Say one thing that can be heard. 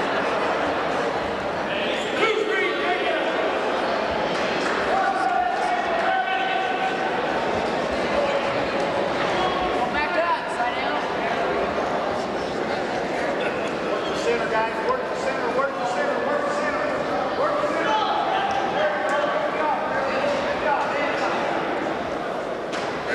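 A crowd of men and women shouts and cheers loudly in a large echoing hall.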